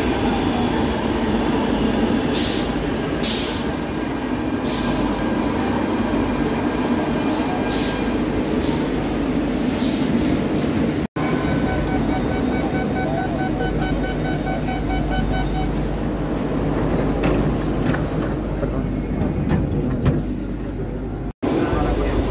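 A subway train rumbles steadily along the rails.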